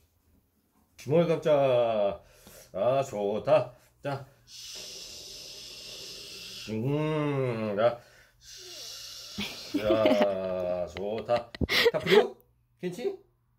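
A young man speaks softly and playfully close by.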